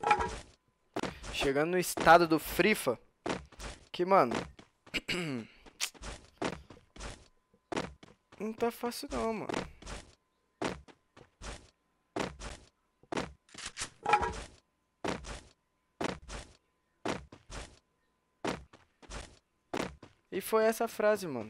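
A young man speaks with animation close to a headset microphone.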